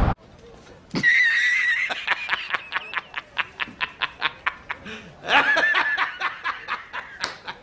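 A middle-aged man laughs loudly.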